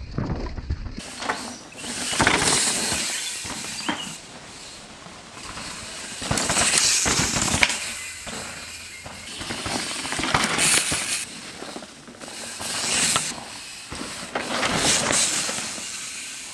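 Mountain bike tyres whoosh past over dirt and skid through turns.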